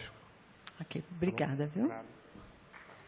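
A man speaks briefly into a microphone in a large hall.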